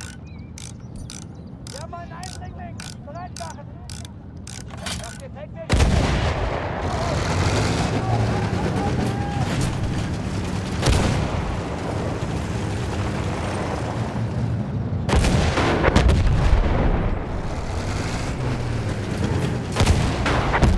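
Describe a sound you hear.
A tank engine rumbles and its tracks clank as it rolls forward.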